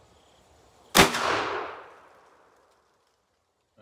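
A rifle fires a single loud shot that echoes away outdoors.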